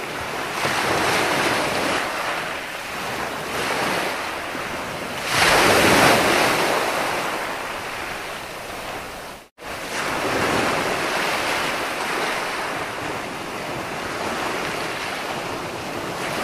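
Waves crash and wash up onto the shore in steady surges.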